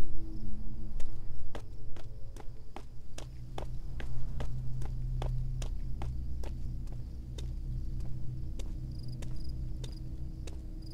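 Footsteps tap steadily on hard stone ground.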